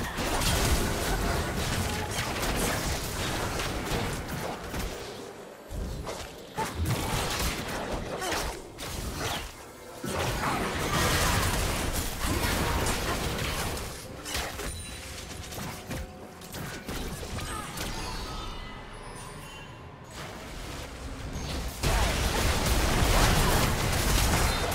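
Spells and attacks crackle and boom in a fast game battle.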